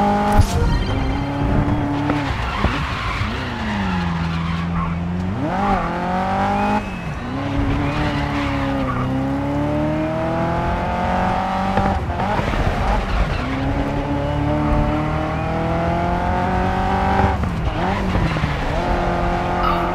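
Tyres screech as a race car drifts through corners.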